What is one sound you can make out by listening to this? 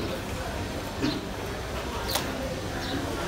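A wet octopus slaps onto a wooden chopping block.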